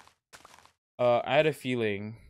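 A young man speaks loudly and animatedly into a microphone.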